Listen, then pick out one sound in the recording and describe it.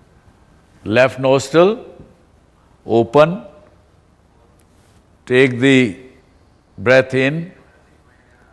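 An elderly man speaks in short, loud bursts with pauses between them.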